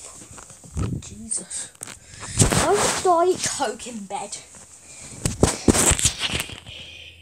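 Cloth rustles and rubs close against the microphone.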